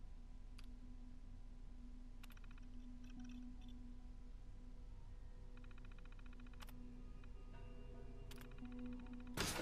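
A computer terminal clicks and beeps softly.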